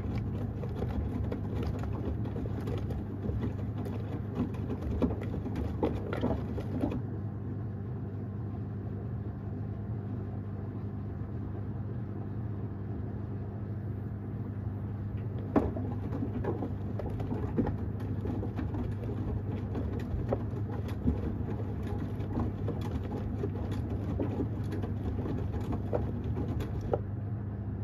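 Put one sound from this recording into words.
Wet laundry tumbles and thumps inside a washing machine drum, pausing for a while in the middle.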